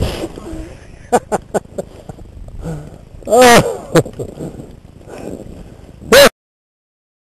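Snow thuds and scrapes as a snowboarder tumbles.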